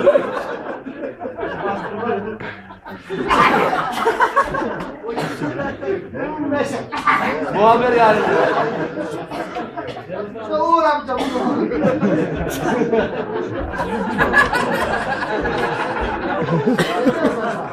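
A crowd of men talk and laugh loudly in an echoing room.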